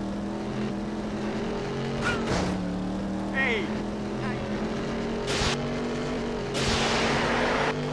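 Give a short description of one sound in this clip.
A race car engine hums steadily at high speed.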